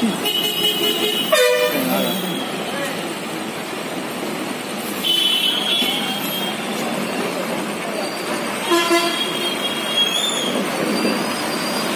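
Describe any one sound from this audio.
A bus engine rumbles as the bus drives slowly through water.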